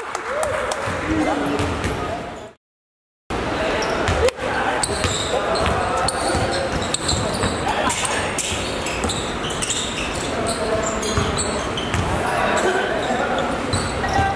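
A basketball bounces on a court floor in a large echoing hall.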